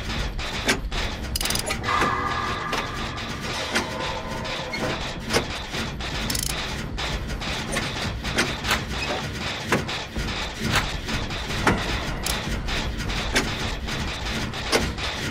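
Metal parts clank and rattle as a machine is repaired by hand.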